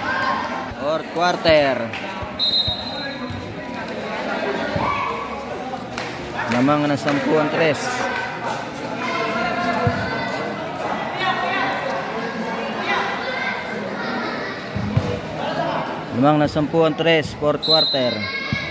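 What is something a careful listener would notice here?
A crowd of young people chatters and shouts nearby.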